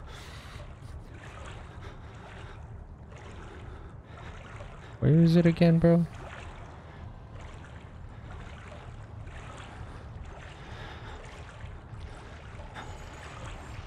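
A young man talks quietly close to a microphone.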